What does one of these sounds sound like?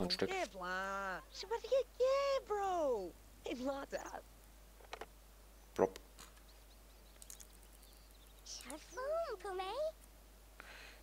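A young woman chatters with animation in a cartoonish babble.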